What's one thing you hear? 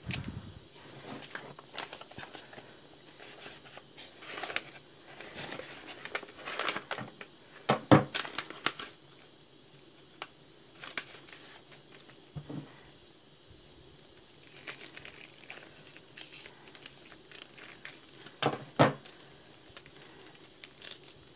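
Paper rustles and crinkles as it is folded by hand.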